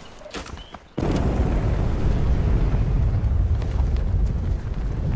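Wind rushes loudly past a falling skydiver.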